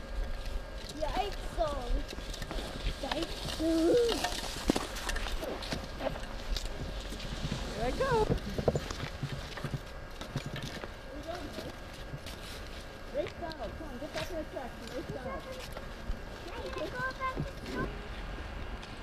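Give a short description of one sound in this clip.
Young children chatter and call out nearby.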